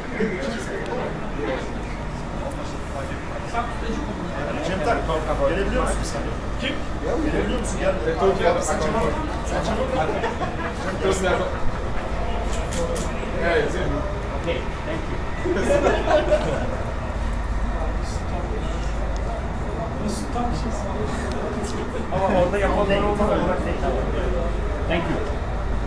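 A crowd of men talk and call out close by in an echoing corridor.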